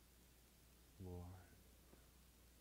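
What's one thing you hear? An elderly man speaks a few quiet words.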